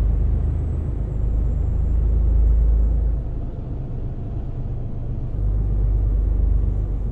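A truck engine rumbles steadily, rising and falling in loudness.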